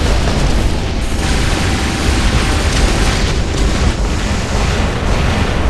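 A heavy robot engine rumbles loudly and steadily.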